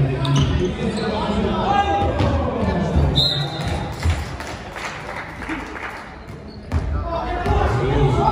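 Young men call out to each other during play.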